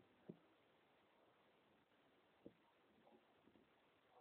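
A middle-aged woman speaks softly close by.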